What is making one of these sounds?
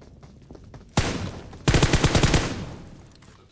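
A rifle fires rapid bursts of shots close by.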